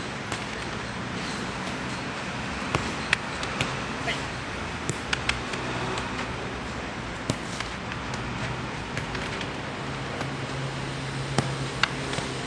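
A football thuds as it is kicked on hard ground.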